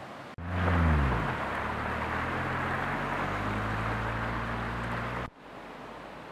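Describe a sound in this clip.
Muddy water rushes and gurgles along a stream bed.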